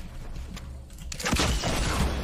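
Gunshots fire rapidly.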